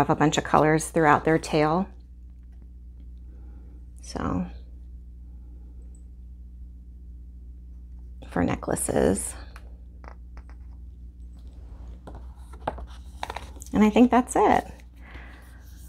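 A woman speaks calmly and close to a microphone, in short bursts.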